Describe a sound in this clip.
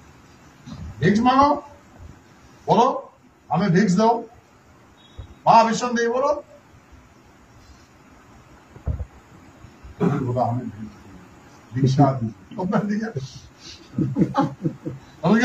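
A man speaks calmly in short bursts with pauses, close by.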